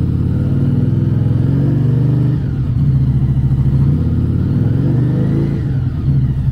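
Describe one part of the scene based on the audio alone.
A motorcycle engine revs up and down as the throttle is twisted.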